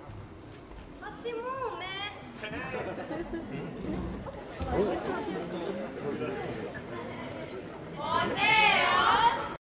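A group of young women sing together on a stage, heard from far back in a large hall.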